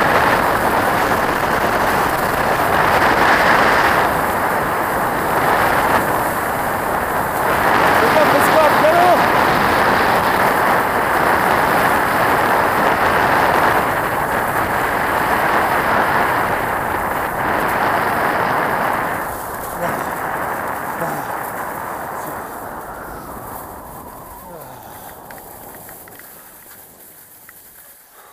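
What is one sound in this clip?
Skis scrape and hiss over hard snow at speed.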